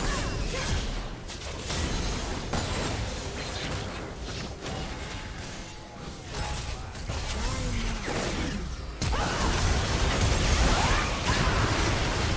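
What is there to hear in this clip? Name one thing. Magic spells crackle and blast in a fast video game battle.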